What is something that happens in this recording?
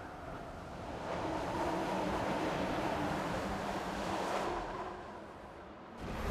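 Air rushes loudly past during a fast swoop.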